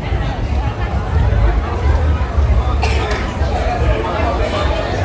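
A crowd of people chatters.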